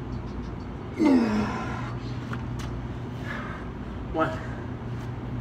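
A man grunts loudly with effort, close by.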